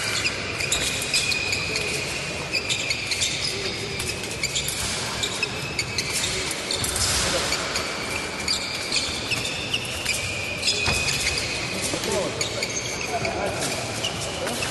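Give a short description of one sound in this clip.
Footsteps stamp and shuffle in a large echoing hall.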